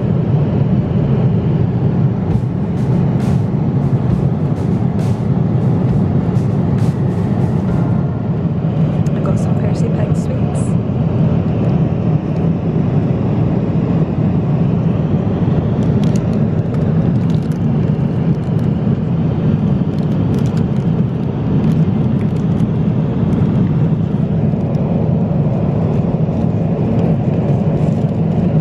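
A jet engine drones steadily in an aircraft cabin.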